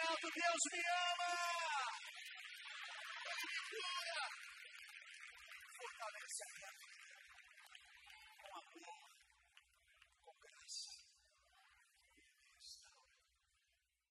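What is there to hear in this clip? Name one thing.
A man sings into a microphone over a loudspeaker.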